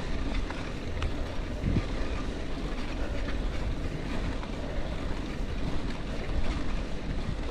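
Bicycle tyres crunch and rumble over a sandy dirt path.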